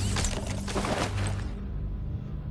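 A bright chime rings out as an item is picked up.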